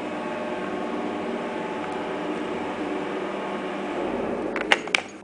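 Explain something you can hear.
An elevator motor hums steadily as the car moves.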